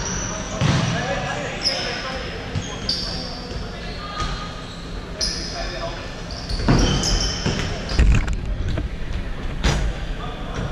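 A ball thumps against the floor and walls.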